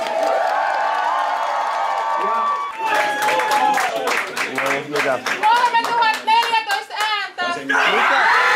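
Several people clap their hands.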